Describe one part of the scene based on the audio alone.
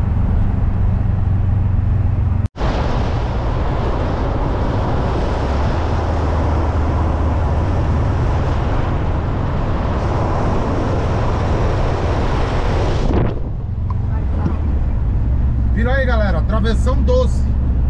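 A vehicle's engine hums steadily.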